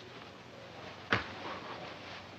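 Dice clatter onto a table.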